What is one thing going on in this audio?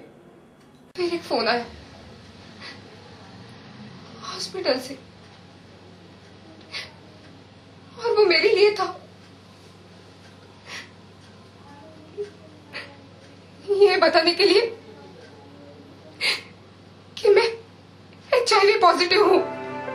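A young woman speaks quietly and haltingly, close by.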